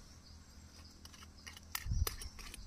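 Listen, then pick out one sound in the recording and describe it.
A small bottle cap clicks and rattles as it is twisted open.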